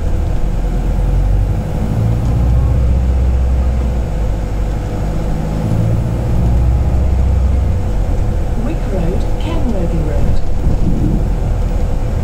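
The bus rattles as it rolls along.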